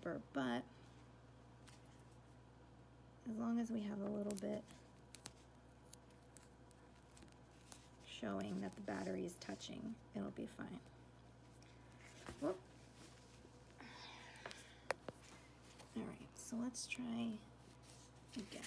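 Small metal and plastic parts click and scrape softly between fingers.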